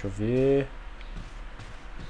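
Footsteps thud on wooden stairs.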